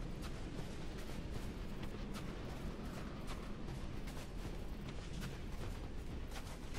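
Footsteps crunch through snow at a steady pace.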